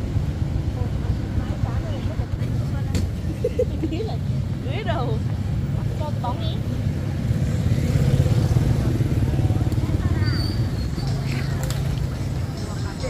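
Women chat casually nearby.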